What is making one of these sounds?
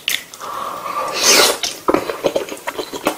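A man slurps noodles loudly, close to the microphone.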